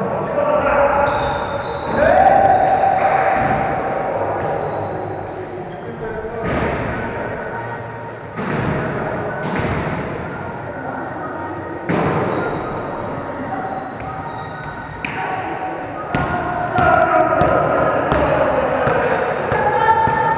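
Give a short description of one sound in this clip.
Men call out to each other across an echoing hall.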